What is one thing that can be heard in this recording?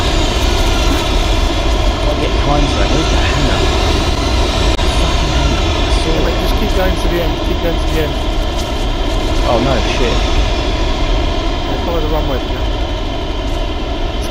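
The twin turbofan engines of an A-10 attack jet drone steadily on approach.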